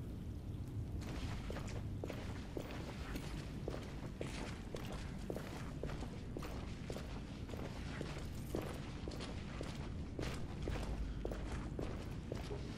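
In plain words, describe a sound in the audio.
Footsteps thud steadily on wooden planks.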